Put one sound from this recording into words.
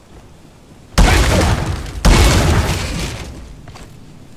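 Two loud booming blasts go off close by, each rumbling away.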